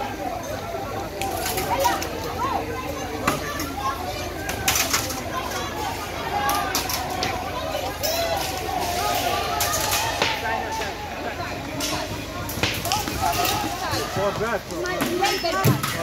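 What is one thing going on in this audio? Objects bang and clatter sharply.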